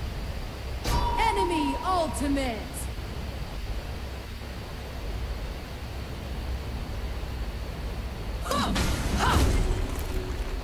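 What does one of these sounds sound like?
Electronic game sound effects chime and whoosh in short bursts.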